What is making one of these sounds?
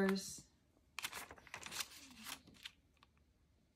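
A sheet of paper rustles under a hand.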